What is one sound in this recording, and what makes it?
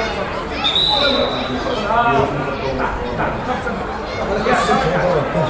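Young men shout to each other across an outdoor field.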